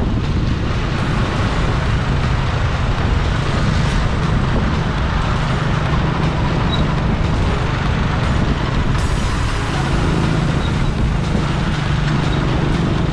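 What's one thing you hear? A motorcycle engine hums steadily at low pitch.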